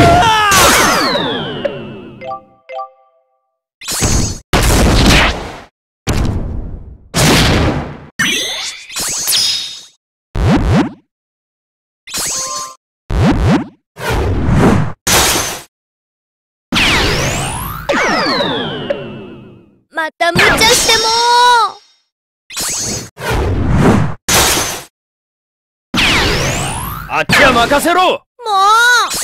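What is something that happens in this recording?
Game sound effects of attacks and impacts burst out in quick succession.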